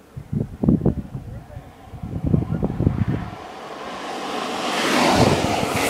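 Skateboard wheels rumble on asphalt, growing louder as a rider rolls up close.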